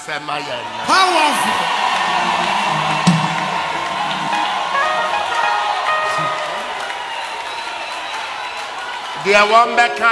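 A large crowd sings together, heard through a loudspeaker.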